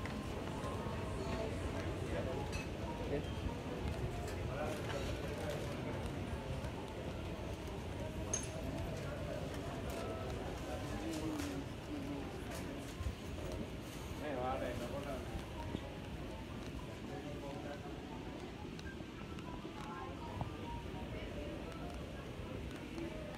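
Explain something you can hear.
Crowd chatter echoes through a large indoor hall.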